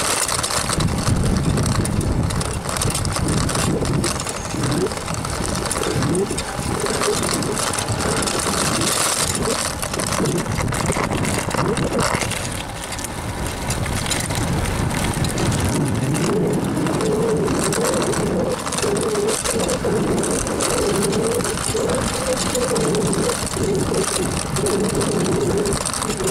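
Bicycle tyres hum over asphalt.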